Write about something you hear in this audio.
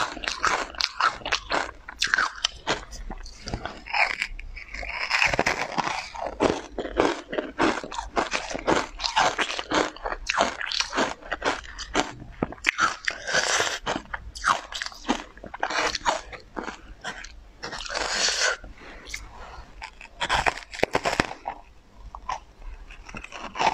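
A young woman chews soft, crunchy food close to a microphone, with wet smacking sounds.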